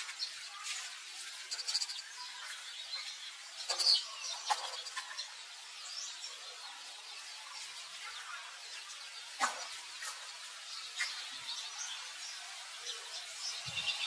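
Young monkeys squeak and chirp in short high calls.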